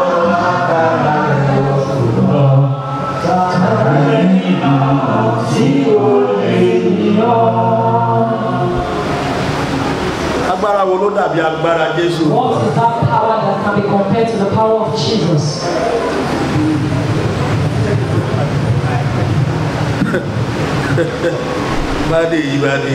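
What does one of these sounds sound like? A middle-aged man sings loudly and passionately into a microphone.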